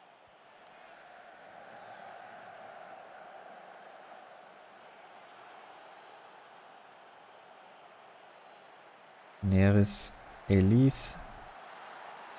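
A stadium crowd murmurs steadily in the background.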